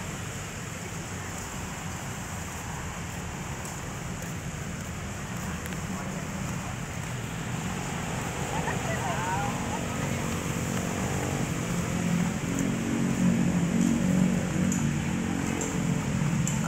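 Steady outdoor traffic hum and wind noise fill the air.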